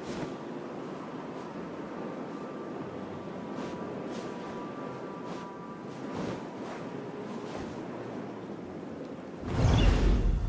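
Wind rushes steadily as an eagle glides.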